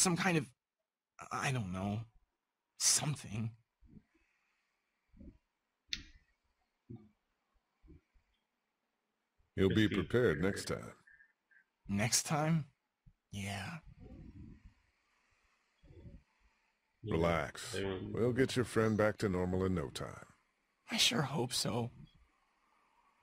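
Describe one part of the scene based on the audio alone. A young man speaks hesitantly and quietly.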